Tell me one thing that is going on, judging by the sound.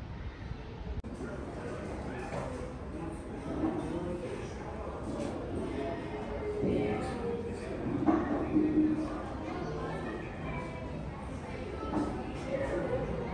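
People's voices murmur in the distance in a large echoing room.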